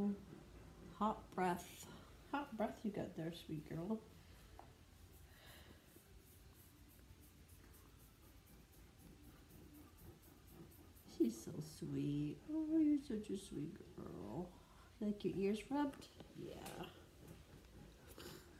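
A woman talks softly and affectionately close by.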